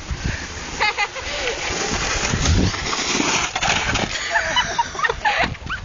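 A snowboard scrapes and hisses over packed snow.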